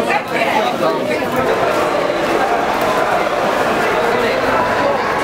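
Many voices echo in a large hall.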